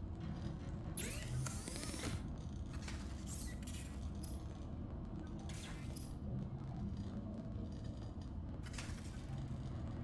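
Sparks crackle and sizzle in short bursts.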